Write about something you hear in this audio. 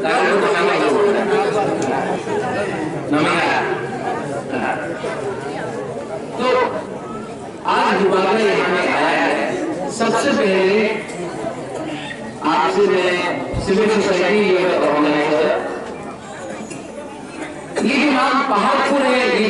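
A young man speaks with animation into a microphone through loudspeakers outdoors.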